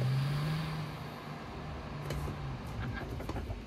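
A car engine hums low and winds down as the car slows.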